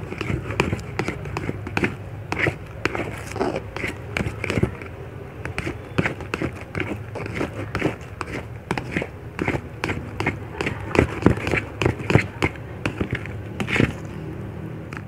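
A plastic spatula squishes and clicks through thick wet slime.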